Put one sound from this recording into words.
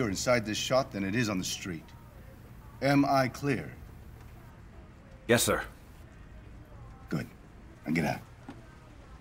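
A man speaks in a low, earnest voice up close.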